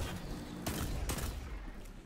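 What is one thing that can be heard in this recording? Gunshots blast close by.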